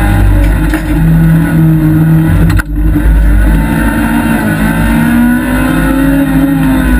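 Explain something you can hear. A car engine roars loudly at high revs, dropping briefly during a gear change.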